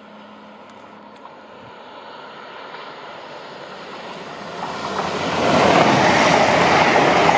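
A train approaches at speed and roars past close by, growing louder.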